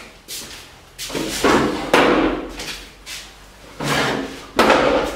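A wooden chair scrapes and creaks on the floor.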